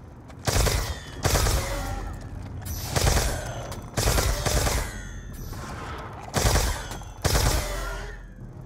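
A bolt-action sniper rifle fires a series of heavy booming shots.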